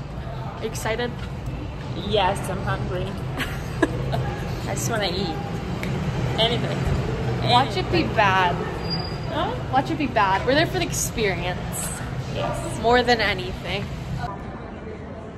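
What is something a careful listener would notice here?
A middle-aged woman talks and laughs cheerfully nearby.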